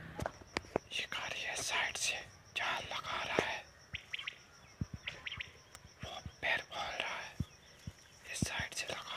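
Granules scattered by hand patter onto leafy plants in short bursts.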